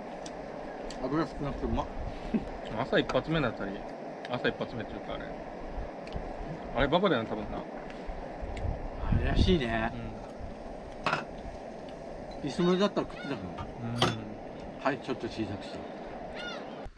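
An adult man talks casually nearby.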